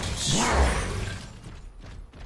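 A heavy gun fires with a loud burst.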